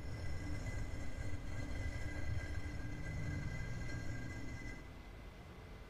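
A heavy metal ring grinds as it turns.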